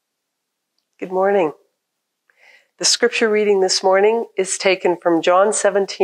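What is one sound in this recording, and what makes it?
A woman reads out calmly into a microphone.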